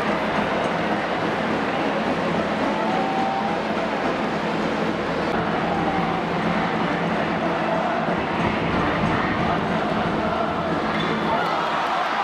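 A large stadium crowd cheers and chants steadily in a wide open space.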